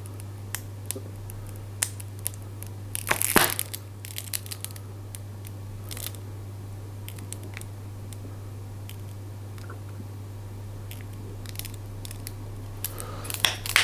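A pepper grinder crunches in short bursts.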